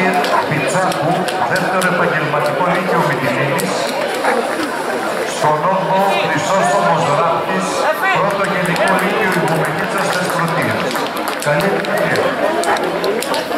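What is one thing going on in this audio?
A crowd of spectators chatters outdoors.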